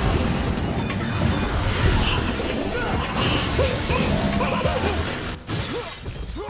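Sword slashes and loud impacts crash in a fight.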